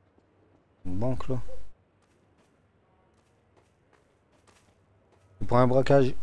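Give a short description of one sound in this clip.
Footsteps tap on a hard indoor floor.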